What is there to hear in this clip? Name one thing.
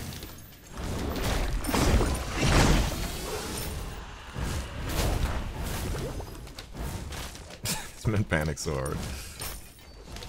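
Heavy weapon blows thud and crash in a fast fight.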